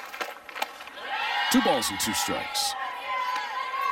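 A crowd cheers and applauds outdoors.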